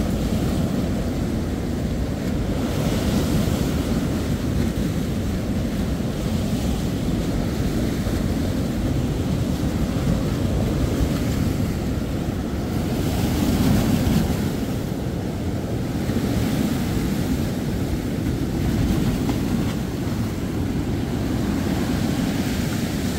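Waves crash and wash up onto a beach.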